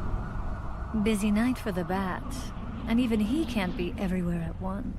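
A woman speaks in a low, sultry voice close by.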